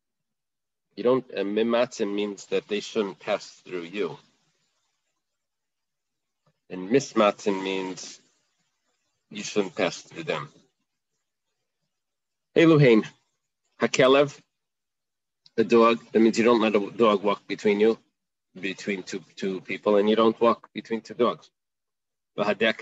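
A man speaks calmly into a microphone over an online call, in short bursts with pauses.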